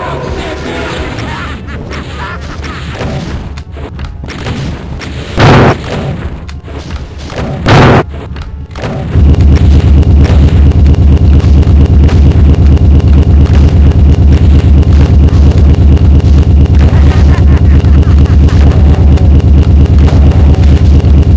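A gun fires again and again.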